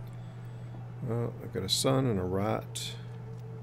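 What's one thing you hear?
A man speaks briefly with animation into a close microphone.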